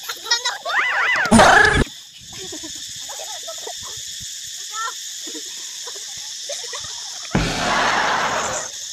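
Children and women shout and laugh excitedly outdoors nearby.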